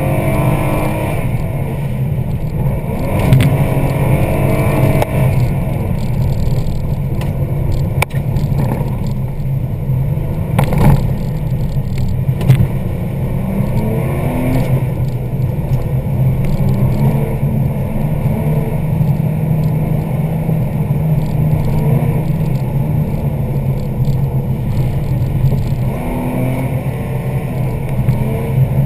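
A car engine roars loudly, revving up and down through the gears.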